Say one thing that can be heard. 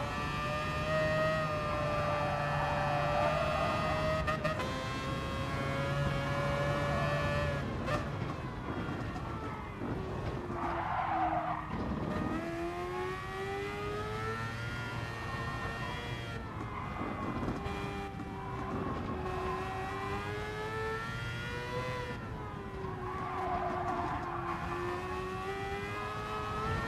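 A racing car engine roars, revving high and dropping as gears shift and the car slows for bends.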